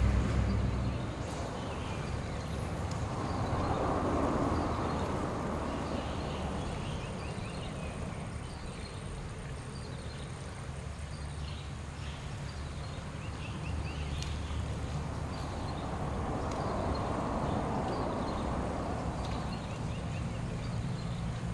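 A river flows past.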